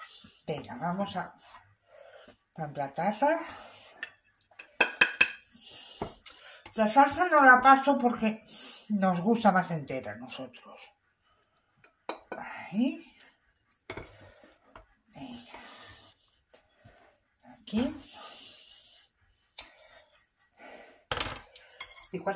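A spoon scrapes and clinks against a dish.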